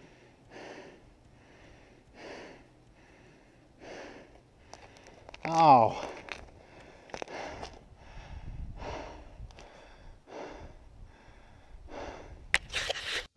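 Footsteps crunch steadily on snow and ice.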